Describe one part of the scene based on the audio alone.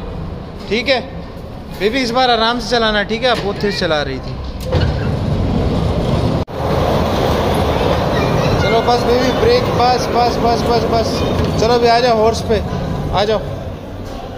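Young children chatter and call out close by.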